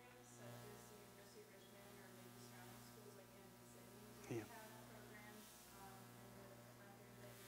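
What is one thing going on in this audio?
A middle-aged man speaks calmly, a little way off.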